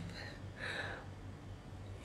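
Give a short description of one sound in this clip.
A woman sips from a mug.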